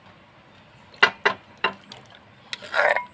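Wet salad is tipped out of a mortar into a ceramic bowl.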